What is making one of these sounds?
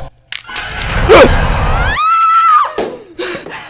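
A woman screams in terror.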